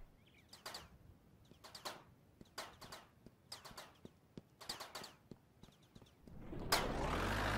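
Footsteps thud on grass at a steady walking pace.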